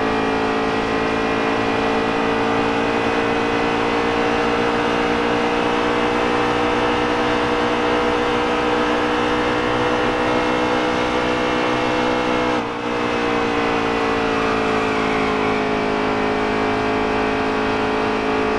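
Tyres hum on the track surface.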